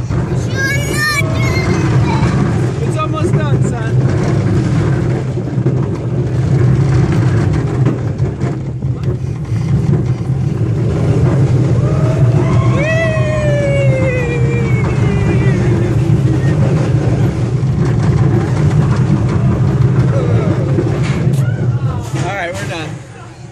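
A ride rumbles steadily.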